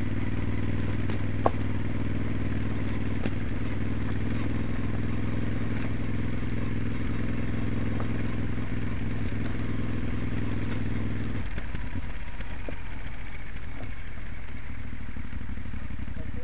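Motorcycle tyres crunch over gravel.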